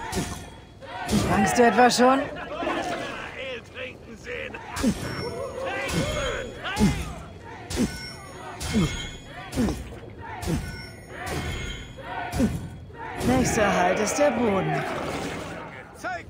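A man shouts and jeers with animation, close by.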